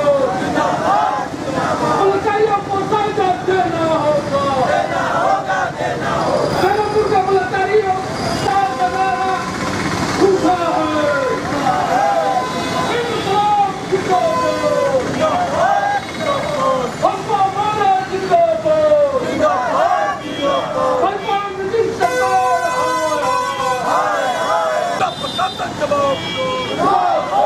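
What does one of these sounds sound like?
A man speaks loudly and steadily.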